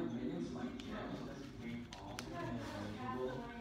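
A paintbrush dabs softly in a small paint pot.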